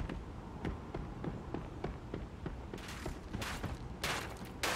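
Footsteps thud quickly and evenly on hard ground.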